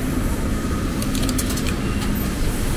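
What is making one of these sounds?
A coin-like token clinks into a turnstile slot.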